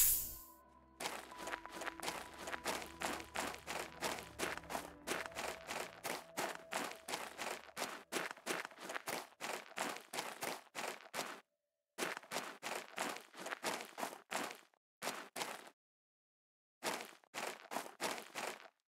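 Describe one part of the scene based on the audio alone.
Footsteps crunch quickly on loose gravel.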